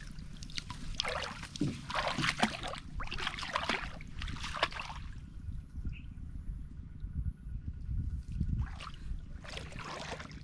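A person wades and splashes through shallow water.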